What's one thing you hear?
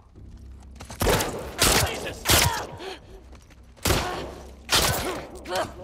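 Loud gunshots ring out and echo.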